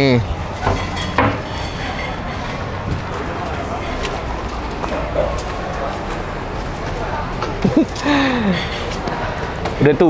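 Footsteps walk along a hard walkway.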